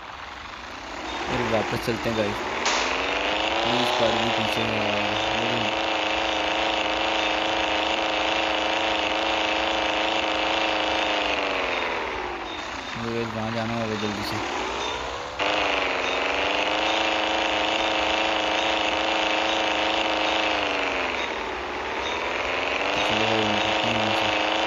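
A car engine roars, rising in pitch as it speeds up and dropping as it slows.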